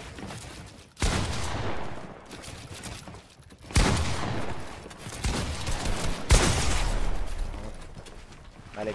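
Loud gunshots and blasts boom in bursts.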